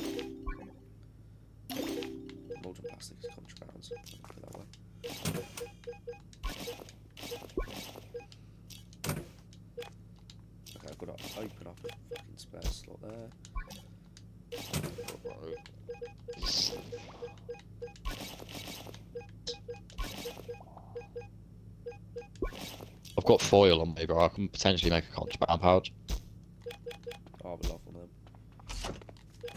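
Short soft clicks and pops sound as game items are picked up and moved.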